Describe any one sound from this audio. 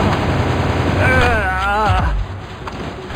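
A creature cries out with a warbling call.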